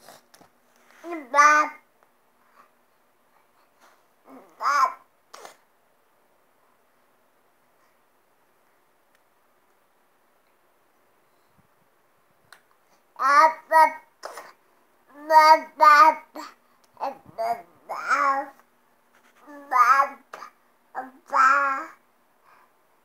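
A baby babbles and squeals loudly, close by.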